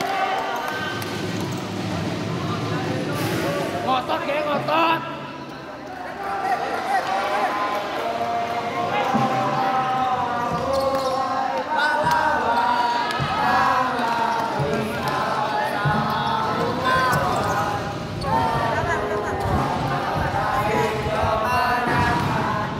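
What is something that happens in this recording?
Boys shout and call out across an echoing indoor hall.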